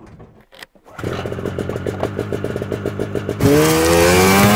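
A snowmobile engine starts and idles.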